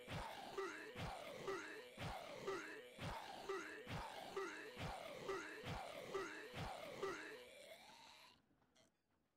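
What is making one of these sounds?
A creature's attack squelches and splatters in a quick repeating rhythm.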